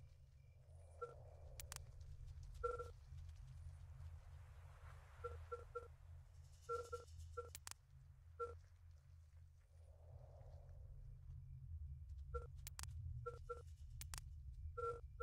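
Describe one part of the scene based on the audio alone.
Short electronic blips sound as game menus open and close.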